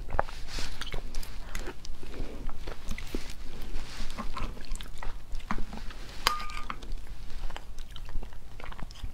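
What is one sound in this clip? A metal spoon clinks against a plate.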